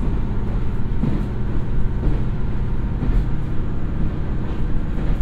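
A diesel railcar engine rumbles steadily close by.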